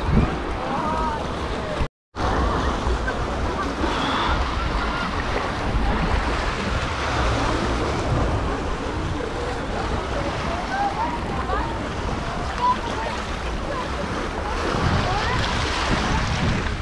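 Small waves wash and splash against rocks close by.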